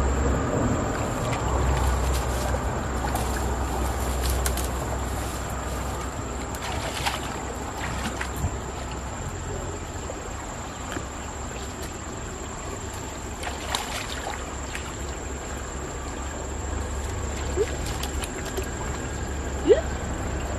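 Water splashes as hands grope in a shallow stream.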